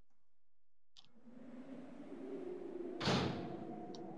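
A door creaks slowly open.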